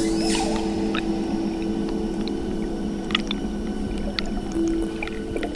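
Water rushes and gurgles underwater.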